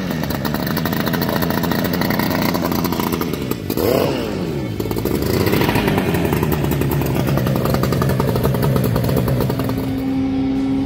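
An outboard motor idles loudly and churns the water up close.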